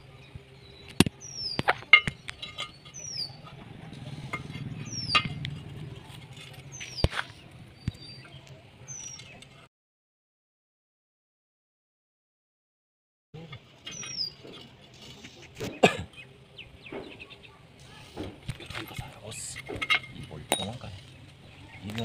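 Metal parts knock and clank together now and then.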